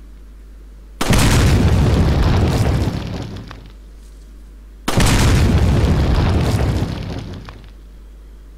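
A pistol fires two loud shots that echo and slowly fade outdoors.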